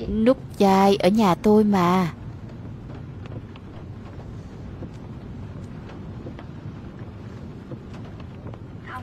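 Rain patters steadily on a car's roof and windows.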